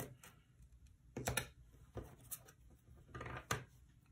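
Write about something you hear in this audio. Plastic tape crinkles and peels.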